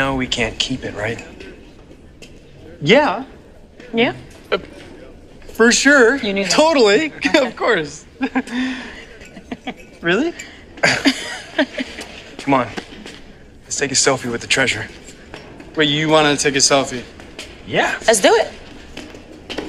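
Young men talk and laugh excitedly close by.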